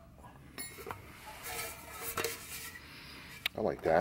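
A plastic fuel can knocks and rattles as it is handled.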